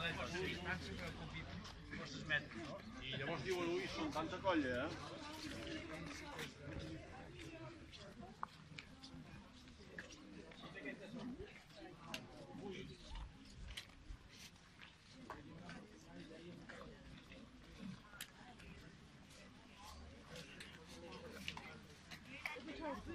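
Men and women chatter nearby as a crowd walks along.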